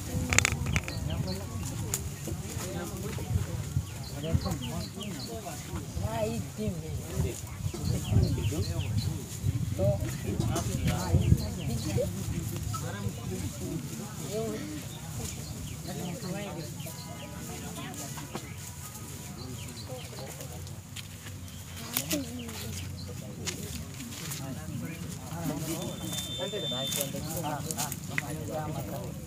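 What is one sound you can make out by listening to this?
A young man speaks with animation outdoors.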